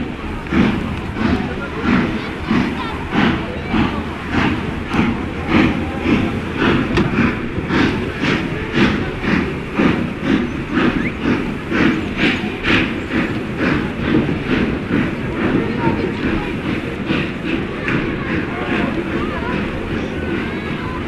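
A steam locomotive chuffs rhythmically as it works along the line.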